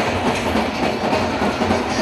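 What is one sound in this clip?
Drums beat loudly.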